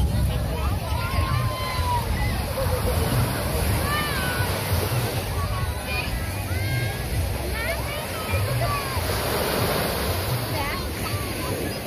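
Waves wash onto the shore.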